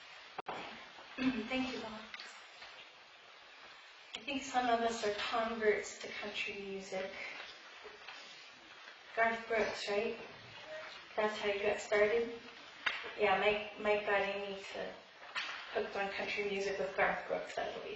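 A woman speaks calmly into a microphone in a large echoing room.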